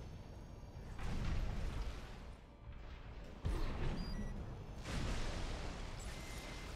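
A robot's jet thrusters roar in bursts.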